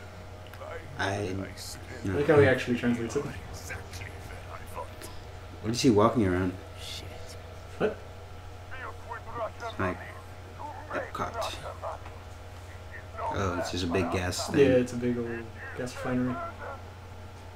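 A man speaks over a radio with a deep, calm voice.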